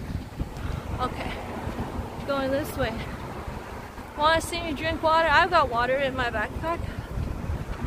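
A young woman speaks casually, close to a microphone.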